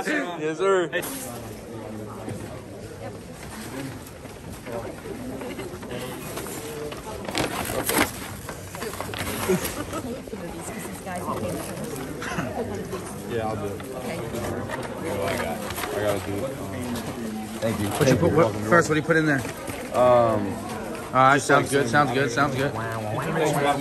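Paper bags rustle and crinkle as they are handled.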